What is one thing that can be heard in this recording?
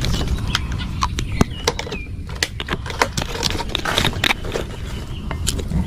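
A plastic bottle cap clicks open and shut.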